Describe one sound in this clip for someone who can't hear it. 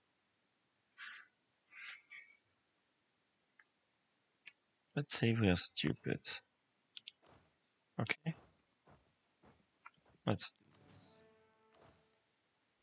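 Short game interface clicks and chimes sound as menus open.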